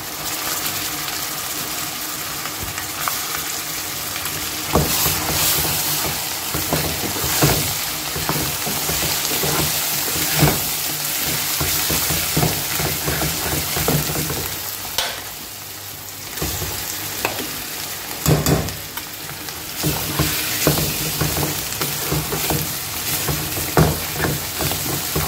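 A wooden spatula scrapes and knocks against a metal pan.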